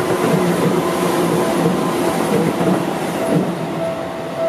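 A train rumbles past with wheels clattering on the rails.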